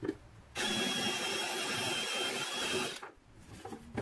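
A cordless drill whirs steadily as it drives into wood, then stops.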